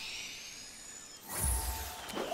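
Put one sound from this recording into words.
A magical chime shimmers.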